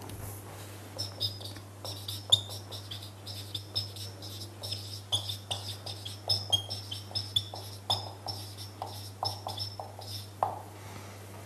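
A marker squeaks across a whiteboard.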